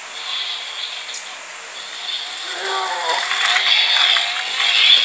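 A small toy car whirs with a high-pitched whine.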